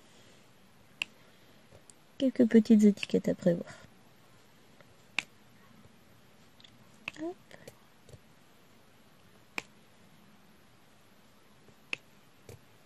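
Small plastic beads tick sharply as they are pressed into place, one at a time.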